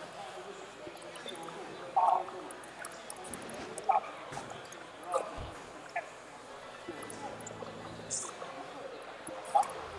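A crowd murmurs in the background of a large hall.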